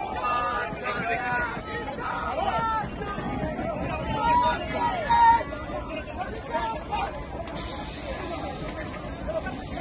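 A crowd of men shouts slogans loudly outdoors.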